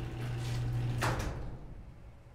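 A garage door rattles and clunks to a stop.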